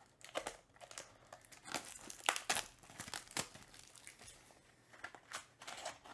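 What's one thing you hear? Hands crinkle and tear open a foil trading card pack.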